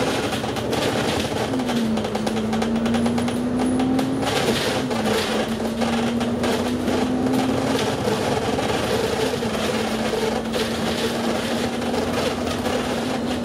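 Tyres roll on the road with a steady rushing noise.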